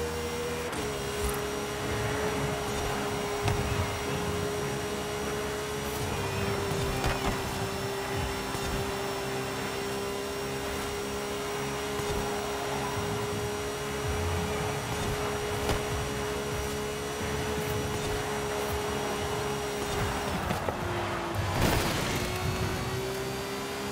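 A race car engine roars steadily at high speed, briefly easing off near the end.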